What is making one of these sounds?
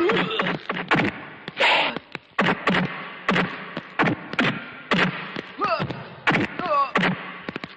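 A man grunts and cries out in pain.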